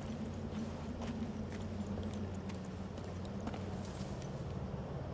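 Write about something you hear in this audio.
Footsteps crunch and scrape on rocky ground.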